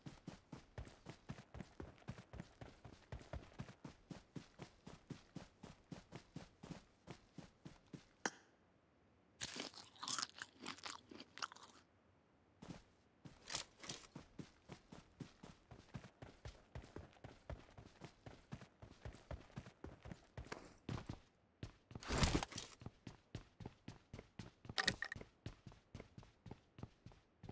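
Footsteps run quickly and steadily over grass and hard ground.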